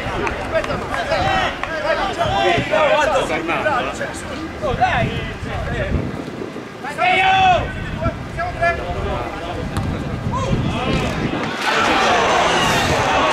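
Men shout and call to each other across an open field.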